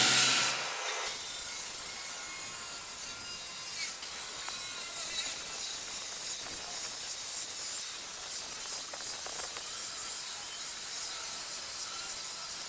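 A metal cutting saw whines steadily through a steel grating.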